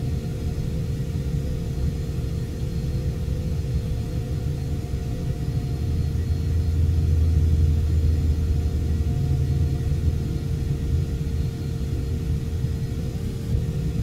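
An aircraft rumbles low as it rolls along the ground.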